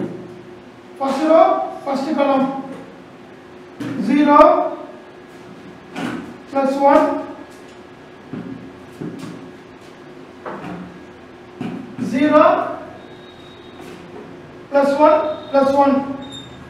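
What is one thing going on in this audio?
A man speaks clearly in short phrases, explaining as he teaches.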